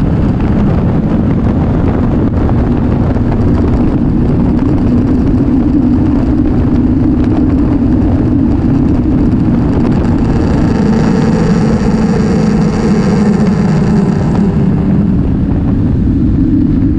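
Wind rushes loudly past a moving rider.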